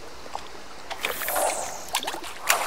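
A fishing rod swishes through the air as a line is cast.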